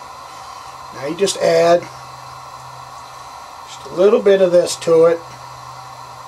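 Liquid glugs and gurgles as it pours from a bottle.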